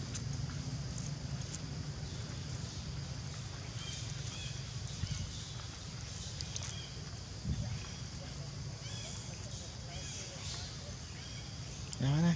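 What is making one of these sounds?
A baby monkey sucks and slurps at a drinking bottle.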